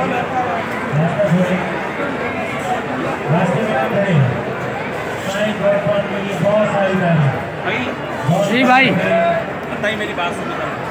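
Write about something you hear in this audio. A crowd of men talks in the background of a large echoing hall.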